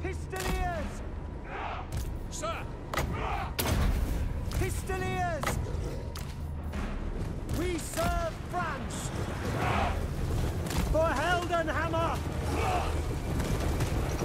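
Weapons clash and thud in a battle.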